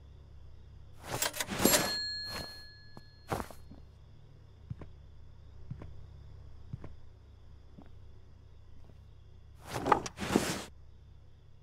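A wooden cabinet door swings open.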